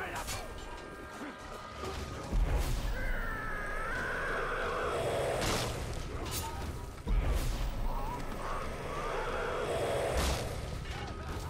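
Swords slash and strike with heavy thuds.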